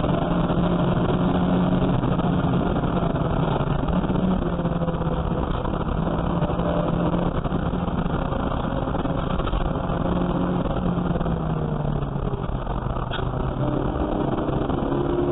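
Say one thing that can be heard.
A car engine roars loudly from inside the cabin, revving up and down through gear changes.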